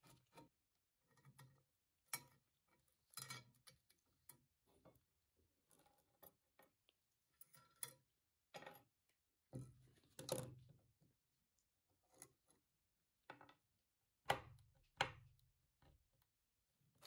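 Metal parts clink and clatter as they are lifted and set down.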